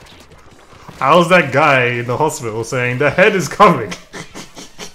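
A man laughs and exclaims loudly and excitedly close to a microphone.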